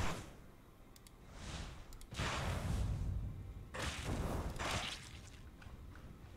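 A spell bursts with a rushing whoosh.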